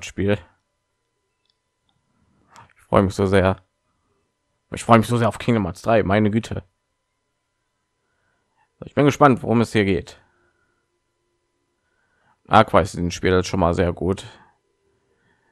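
A man speaks calmly and slowly, with long pauses.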